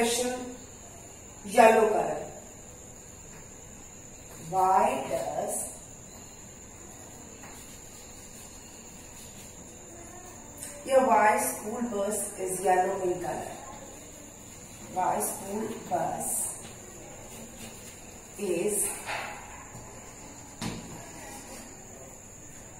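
A woman speaks slowly and clearly, close by, in short phrases.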